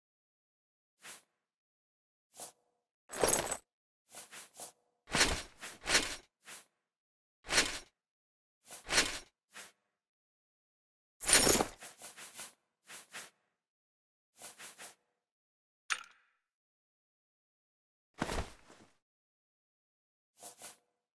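Metal armor clanks and rattles in short bursts.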